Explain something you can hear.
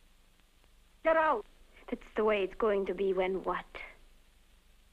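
A young woman speaks.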